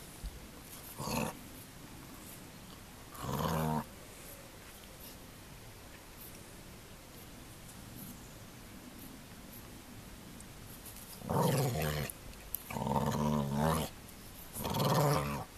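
A dog growls playfully in short bursts.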